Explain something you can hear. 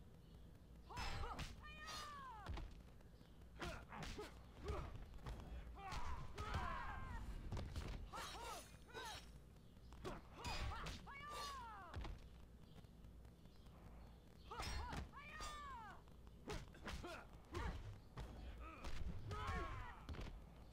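Punches and kicks land with heavy thuds and whooshes.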